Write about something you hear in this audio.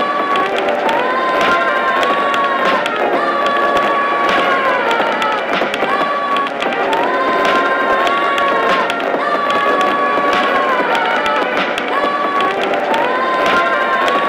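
Drums and percussion tap out a steady beat.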